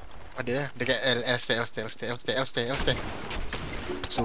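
A sniper rifle fires a single loud shot.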